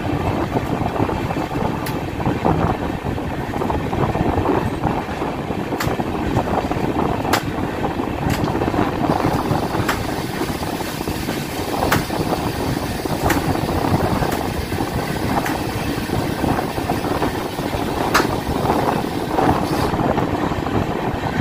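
A train rumbles steadily along the track at speed.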